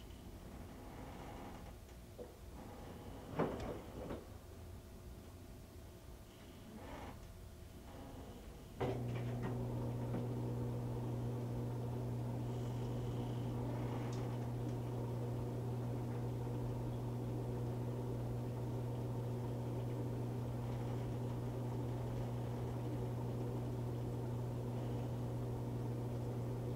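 A washing machine drum turns, sloshing water and laundry.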